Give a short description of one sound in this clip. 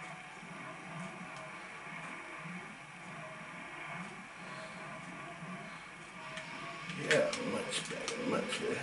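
Game music and sound effects play from a television speaker.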